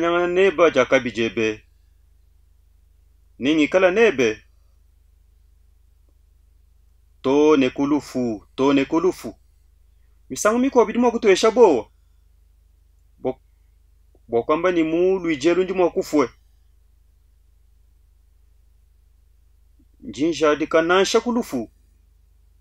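A man speaks earnestly and close up, with long pauses between phrases.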